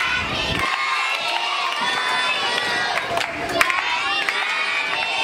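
Children clap their hands.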